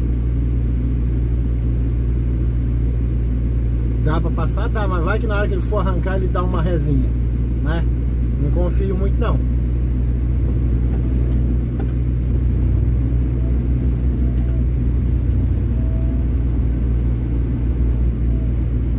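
A truck engine rumbles low and steady close by.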